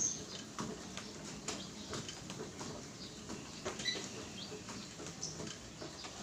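A treadmill motor and belt whir steadily.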